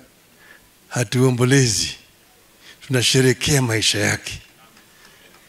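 An elderly man speaks with animation through a microphone and loudspeakers, in short bursts.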